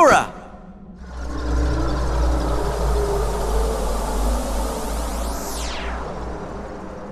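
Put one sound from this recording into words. A dark cloud of smoke rushes up with a loud roaring whoosh.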